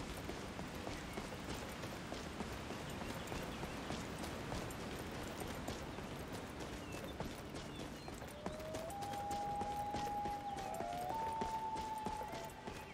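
Footsteps run steadily over stone.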